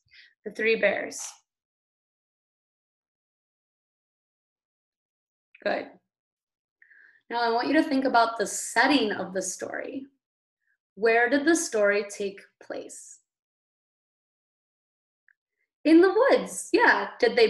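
A woman speaks calmly and clearly into a microphone, with pauses.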